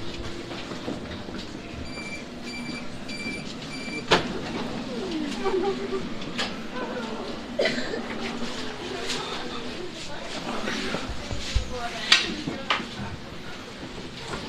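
A tram rumbles steadily along the tracks.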